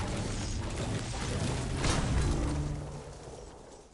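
A pickaxe thuds against a tree in a video game.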